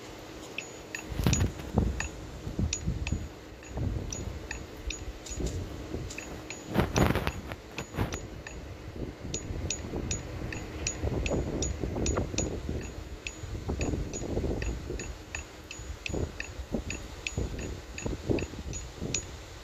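A pickaxe strikes rock again and again with short, sharp clicks.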